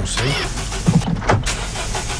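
A car engine cranks and starts.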